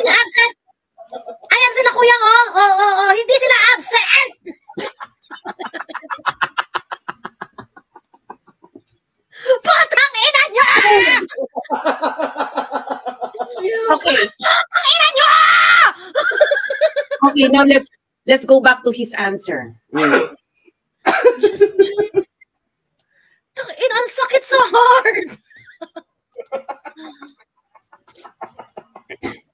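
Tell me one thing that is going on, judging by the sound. Young women talk and laugh with animation over an online call.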